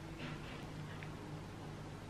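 A young woman sips a drink.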